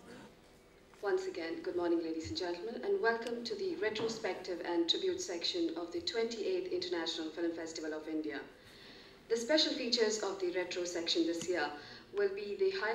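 A young woman speaks steadily into a microphone, heard over a loudspeaker in a hall.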